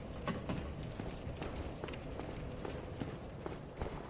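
Armoured footsteps thud up stone steps.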